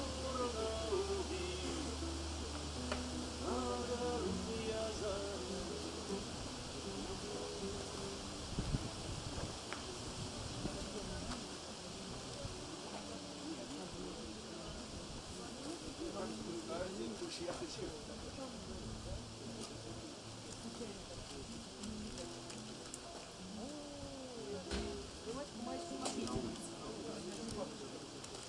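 A man sings along to the music.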